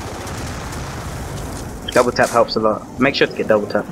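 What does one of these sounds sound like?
A gun is reloaded with a metallic click.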